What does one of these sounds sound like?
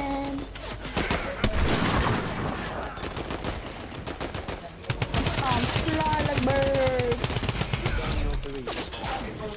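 Gunshots fire in rapid bursts in a video game.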